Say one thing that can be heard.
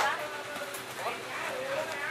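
Plastic crates clatter as they are stacked.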